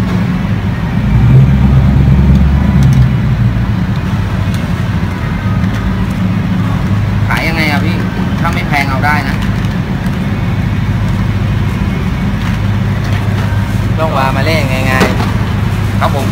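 Cardboard and paper rustle as a box is handled.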